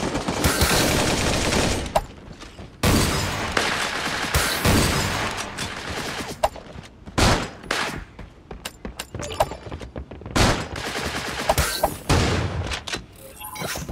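Gunfire rattles in quick bursts from a game.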